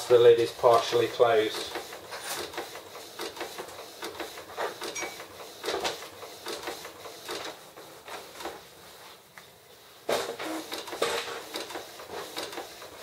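A printer whirs and clicks as its mechanism moves.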